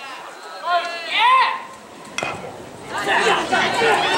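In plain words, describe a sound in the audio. A metal bat strikes a baseball with a sharp ping.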